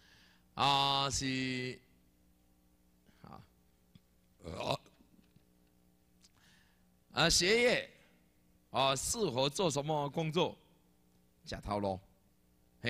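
A man speaks slowly and with animation through a microphone, in short phrases with pauses.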